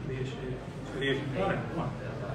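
A cue strikes a billiard ball.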